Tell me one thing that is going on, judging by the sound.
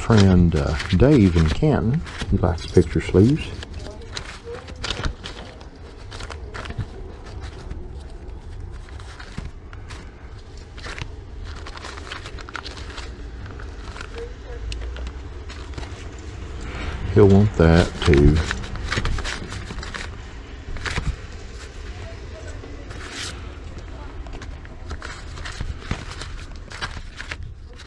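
Paper record sleeves rustle and slide as a hand flips through them.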